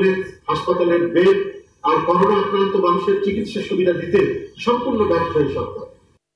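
An elderly man reads out a statement into a microphone, his voice slightly muffled.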